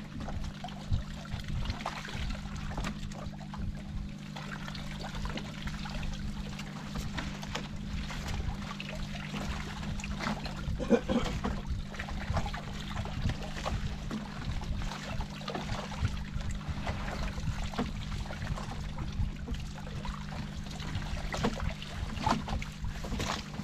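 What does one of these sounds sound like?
Water laps against the side of a boat.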